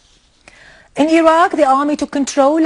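A woman reads out the news calmly into a microphone.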